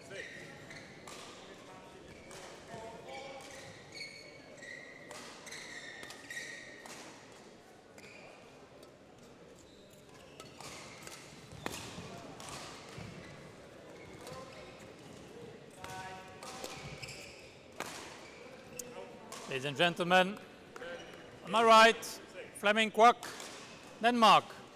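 Shuttlecocks are struck with rackets in a large echoing hall.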